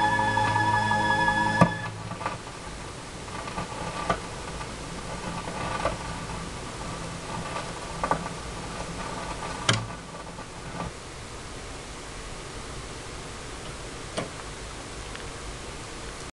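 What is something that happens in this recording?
A vinyl record hisses, crackles and pops as it spins.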